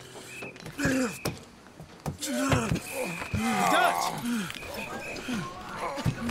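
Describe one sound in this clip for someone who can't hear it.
A man grunts and groans with effort close by.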